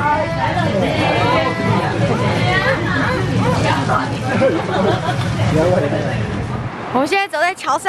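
Young women chat and laugh nearby.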